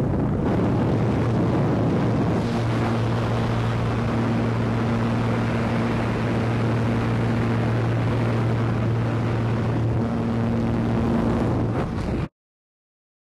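Wind roars loudly through an open aircraft door.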